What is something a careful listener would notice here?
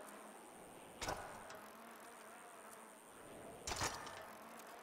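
Bicycle tyres thump down on a hard surface.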